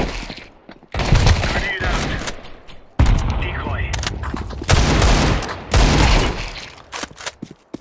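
Rifle shots ring out in loud bursts.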